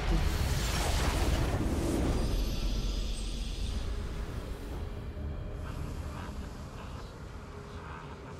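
A triumphant fanfare plays and slowly fades.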